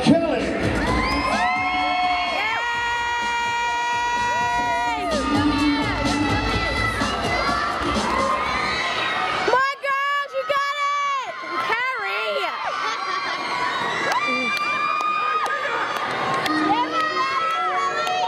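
Pop music with a woman singing plays loudly through loudspeakers.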